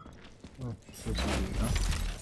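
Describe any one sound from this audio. A metal drawer slides open with a scrape.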